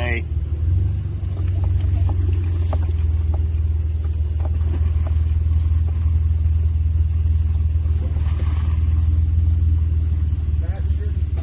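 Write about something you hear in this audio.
A vehicle engine rumbles steadily while driving slowly.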